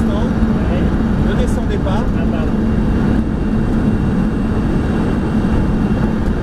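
A car engine drones steadily at high speed.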